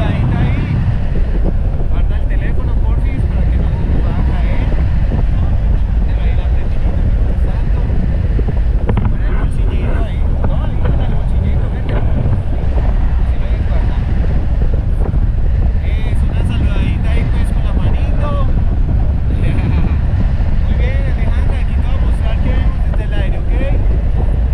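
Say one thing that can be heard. Strong wind roars and buffets loudly, as if rushing past a microphone outdoors.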